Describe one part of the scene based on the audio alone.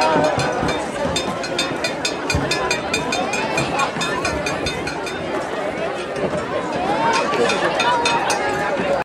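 Many people clap and cheer.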